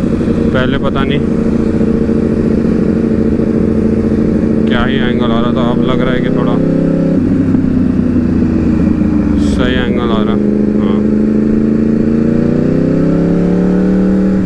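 A motorcycle engine hums steadily, dropping in pitch and then rising as it speeds up again.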